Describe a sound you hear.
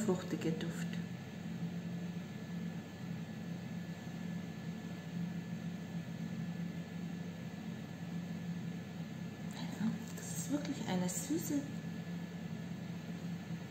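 A woman sniffs deeply close by.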